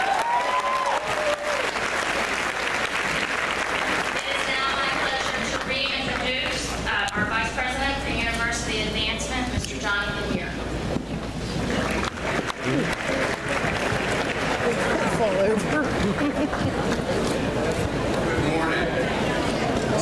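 A large crowd cheers and claps in a big echoing hall.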